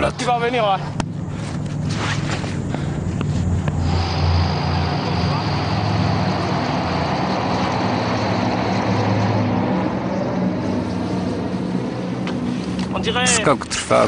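A propeller plane drones steadily overhead.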